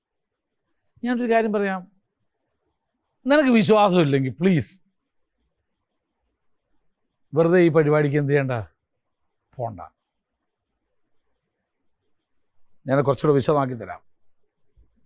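A middle-aged man speaks calmly and clearly through a microphone, in short phrases with pauses.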